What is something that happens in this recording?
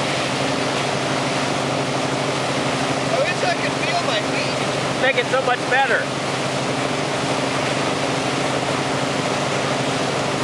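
Water churns and rushes loudly in a boat's wake.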